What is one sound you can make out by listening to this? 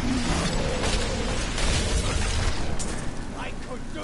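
Magic spells crackle and burst in a noisy fight.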